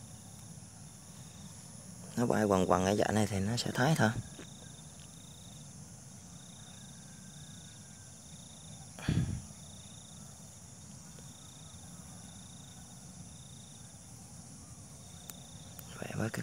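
Dry plant stalks rustle softly as fingers twist them together.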